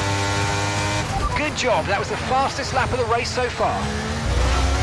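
A racing car engine blips sharply on hard downshifts while braking.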